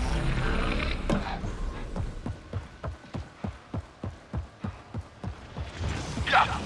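Heavy footsteps thud quickly and evenly on a hard floor.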